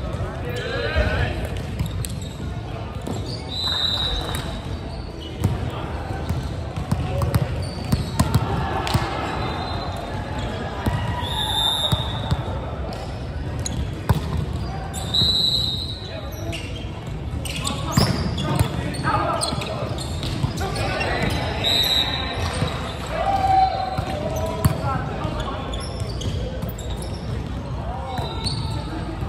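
Young men call out and shout in a large echoing hall.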